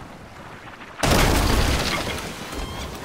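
A cannon fires with a loud boom.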